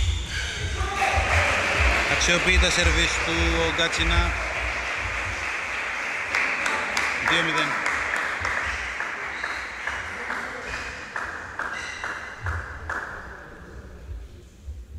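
A crowd cheers and applauds loudly.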